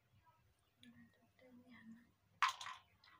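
A woman speaks softly nearby.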